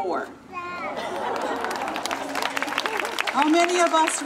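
Hands clap in quick applause.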